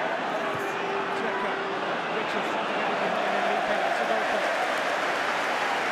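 A crowd roars and cheers as an attack builds.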